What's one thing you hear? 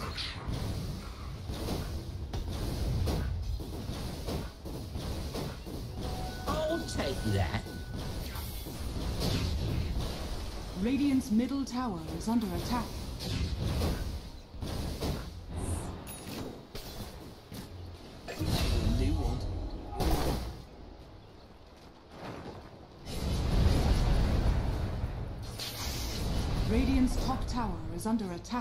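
Magic spells whoosh and crackle amid clashing fighting sounds.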